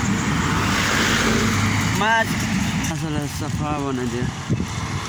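A truck engine rumbles past close by.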